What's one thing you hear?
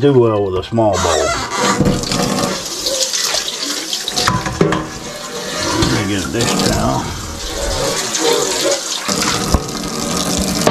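Water runs from a tap and splashes on metal.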